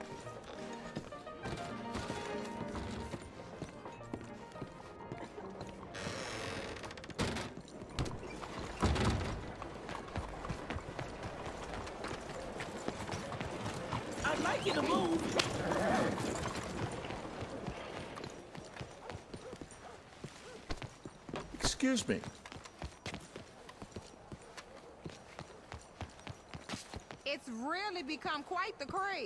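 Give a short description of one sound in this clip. Footsteps walk on wooden floor and stone paving.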